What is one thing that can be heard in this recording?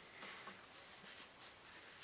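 A cloth rubs across a wooden surface.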